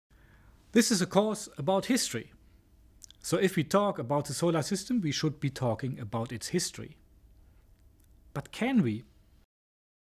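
A middle-aged man speaks calmly and clearly into a close microphone.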